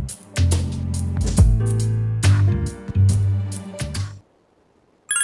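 Game music plays with a bouncy beat and suddenly cuts off.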